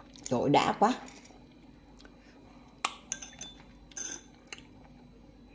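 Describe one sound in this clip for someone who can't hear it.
A metal spoon stirs and clinks against ice in a glass.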